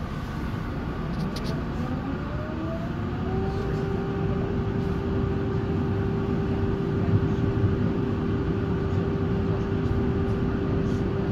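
A tram's electric motor whines, rising in pitch as it speeds up.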